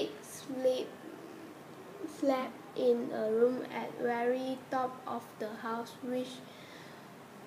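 A young woman sings softly close to the microphone.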